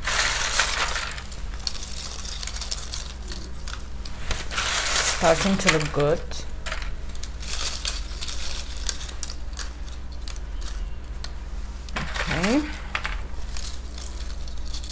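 Crisp pieces rustle and crackle as hands handle them.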